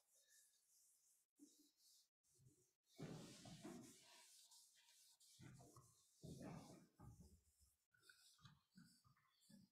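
A cloth rubs across a chalkboard.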